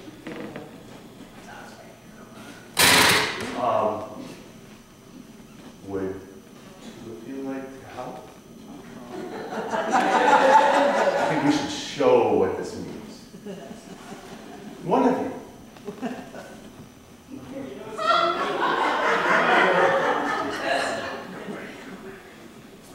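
A man speaks with animation to a small group.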